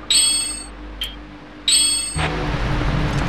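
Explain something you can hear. Bright menu chimes ring out.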